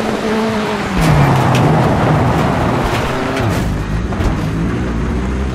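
Tyres skid and crunch over loose dirt.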